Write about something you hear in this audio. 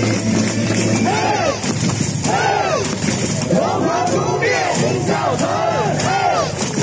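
Young women sing a cheer chant loudly, leading the crowd.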